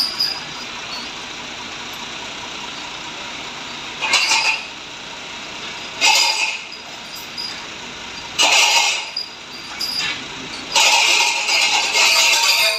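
An engine hums steadily nearby.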